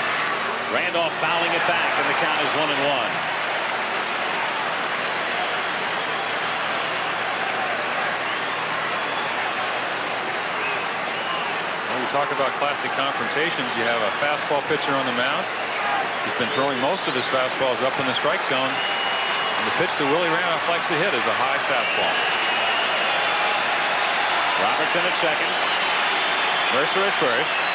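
A large stadium crowd murmurs and cheers.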